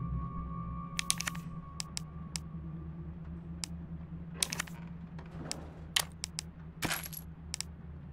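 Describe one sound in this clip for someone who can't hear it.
Short menu clicks and blips sound as items are selected.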